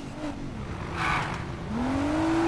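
Tyres screech briefly as a car skids.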